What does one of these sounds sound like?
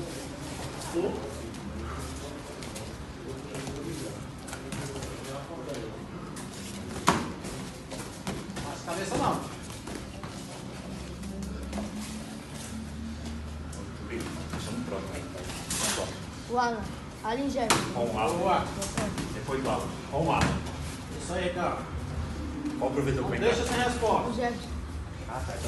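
Gloved punches thud sharply against pads and bodies.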